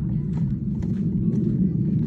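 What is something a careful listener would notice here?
A wheeled cart rolls over dirt.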